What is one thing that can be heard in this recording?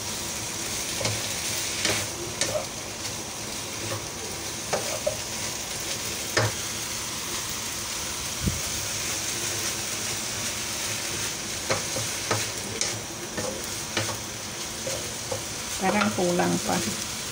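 Vegetables sizzle steadily in a hot frying pan.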